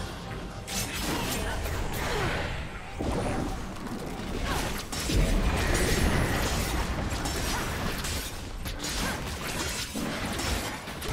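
Game weapons clash and strike in quick bursts.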